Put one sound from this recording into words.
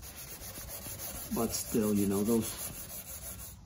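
A hand rubs across a metal panel.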